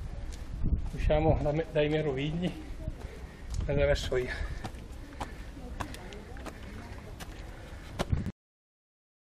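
Footsteps scuff on stone steps and paving.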